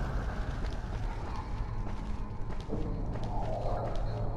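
Hands and feet knock against a wooden ladder while climbing.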